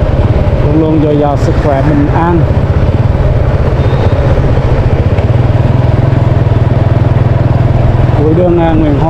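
A motorbike engine hums steadily at low speed.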